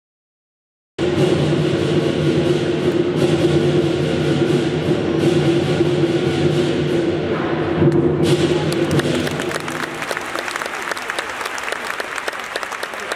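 A large drum pounds in a steady rhythm.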